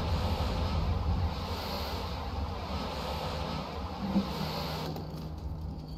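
A fire extinguisher sprays with a loud, steady hiss.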